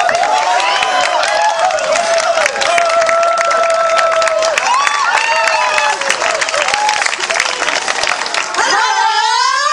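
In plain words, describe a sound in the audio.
A crowd claps loudly.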